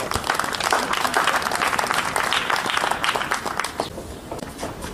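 Spectators applaud.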